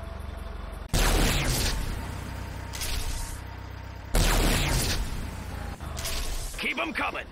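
A vehicle engine rumbles close by.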